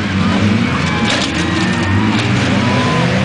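Metal crunches as cars collide.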